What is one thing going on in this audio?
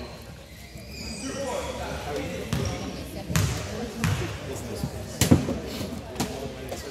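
A crowd of spectators talks in a large echoing gym.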